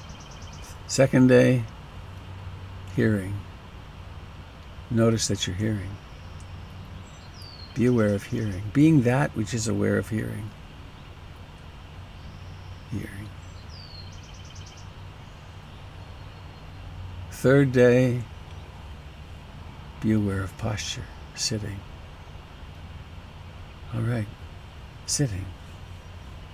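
An elderly man speaks slowly and calmly into a headset microphone, with long pauses.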